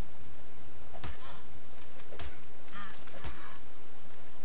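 Sharp thuds of blows strike a creature several times in quick succession.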